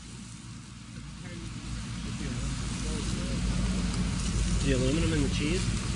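Burgers sizzle on a hot grill.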